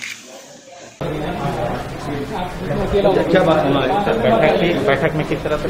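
Several men talk at once close by, in a hubbub.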